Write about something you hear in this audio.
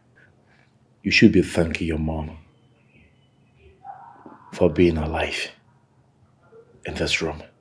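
A man speaks angrily and forcefully close by.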